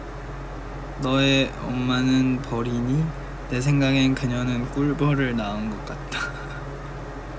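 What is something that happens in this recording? A young man speaks calmly and close to a microphone.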